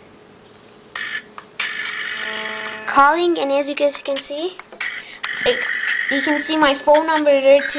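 A phone rings with a loud ringtone.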